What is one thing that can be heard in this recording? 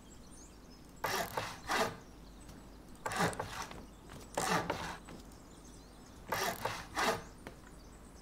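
Wooden building pieces knock heavily into place, one after another.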